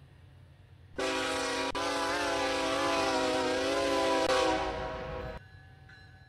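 A train horn blares loudly and then cuts off.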